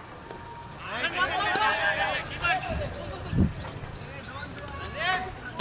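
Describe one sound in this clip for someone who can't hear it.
Men shout loudly outdoors in an appeal.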